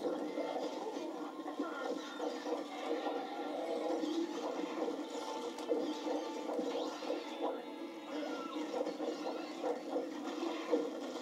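Game sound effects of fighting clash and burst through a television speaker.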